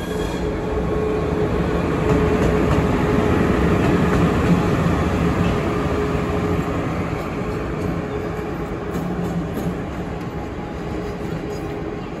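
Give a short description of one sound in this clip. Steel wheels clatter over rail joints.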